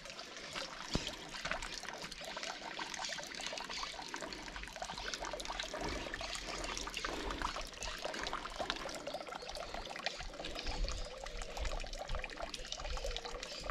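A thin stream of water trickles and splashes steadily into a basin.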